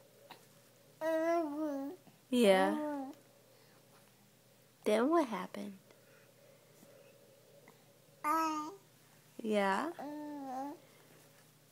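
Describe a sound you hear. A baby coos and babbles up close, in short bursts.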